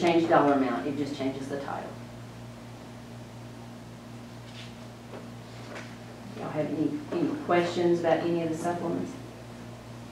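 An older woman speaks calmly into a microphone.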